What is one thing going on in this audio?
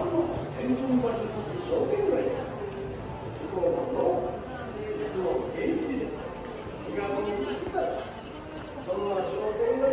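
Men and women chat nearby as they walk past.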